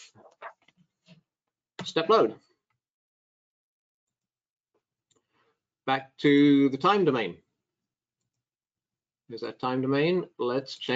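A man speaks calmly and clearly into a microphone, in short bursts with pauses.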